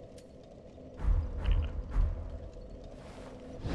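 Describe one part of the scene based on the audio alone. Soft menu clicks sound as selections are made.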